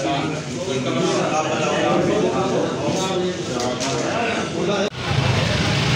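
Several men talk nearby in a room.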